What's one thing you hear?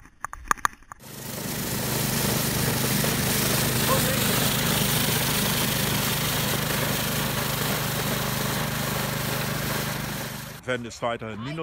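A small engine drones steadily as a motor sweeper brushes snow.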